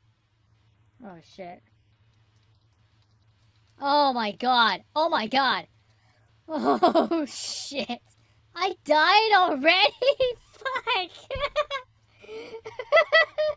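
A young woman talks and exclaims with animation close to a microphone.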